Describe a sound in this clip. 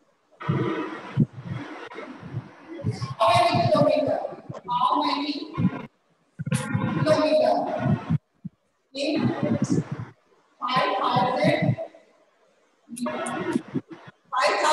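A woman speaks clearly and steadily, as if explaining, close to a microphone.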